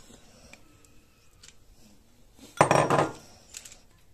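A spoon taps against a ceramic bowl.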